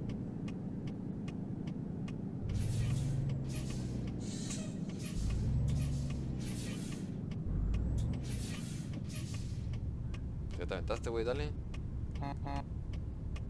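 A truck engine hums steadily and swells at times.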